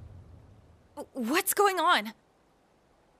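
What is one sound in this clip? A young man speaks briefly with calm confidence.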